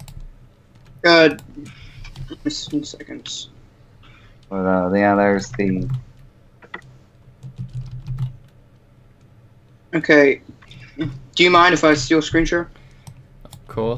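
A young man speaks casually over a computer microphone.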